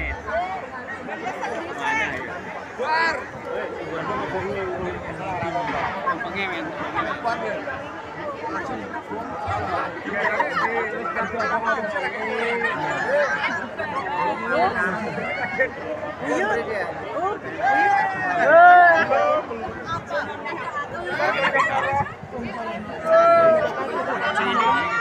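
A crowd of men and women murmur and talk all around, close by.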